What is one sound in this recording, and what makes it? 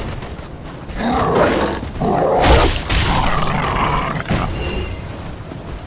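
Wolves snarl and growl close by.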